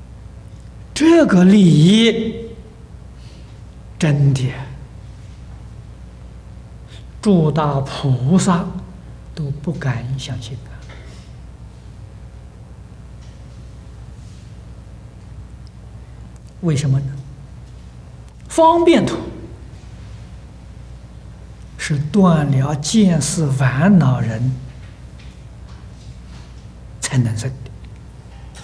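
An elderly man speaks slowly into a microphone, in short phrases with long pauses.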